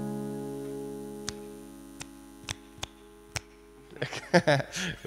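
A strummed acoustic guitar chord rings out and slowly fades.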